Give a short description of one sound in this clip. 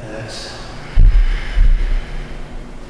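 Bare feet thump onto a mat.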